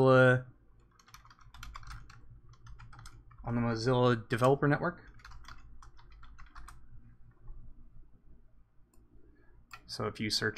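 A keyboard clicks with quick typing.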